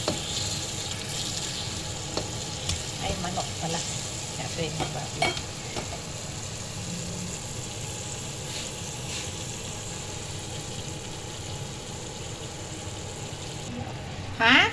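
Food sizzles steadily in a frying pan.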